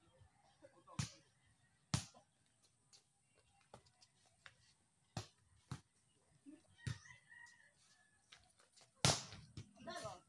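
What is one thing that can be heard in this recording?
A ball is hit by hand again and again outdoors.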